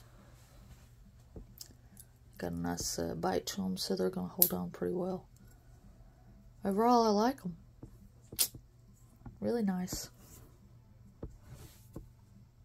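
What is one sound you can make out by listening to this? A small metal clip clicks open and shut.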